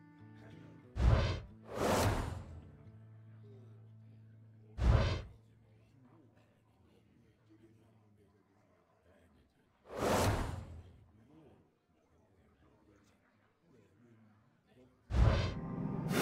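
Game cards flip over with loud whooshing swells.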